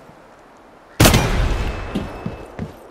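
A sniper rifle fires a single loud shot that echoes away.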